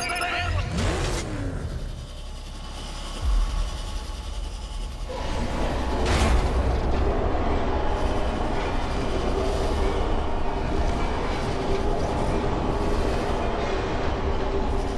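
Air rushes and whooshes steadily as a figure glides fast.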